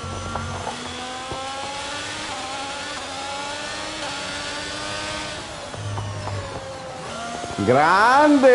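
A racing car engine revs and whines through gear changes.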